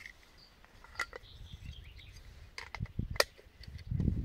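A metal kettle clinks against stones.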